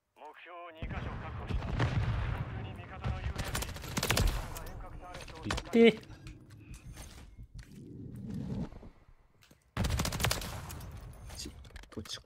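Rapid bursts of gunfire ring out close by.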